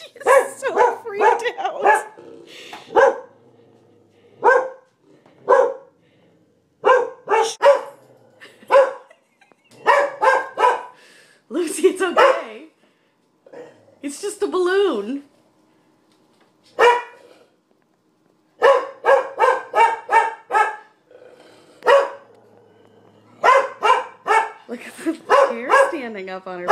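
A dog barks and howls loudly in repeated bursts.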